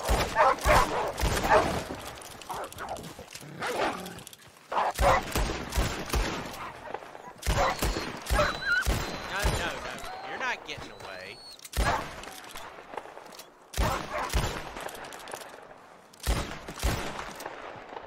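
Rifle shots ring out loudly, one after another.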